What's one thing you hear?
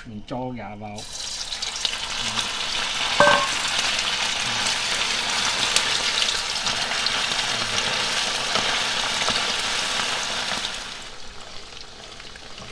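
Food sizzles and crackles loudly in hot oil.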